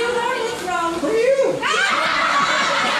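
Young people answer together, laughing.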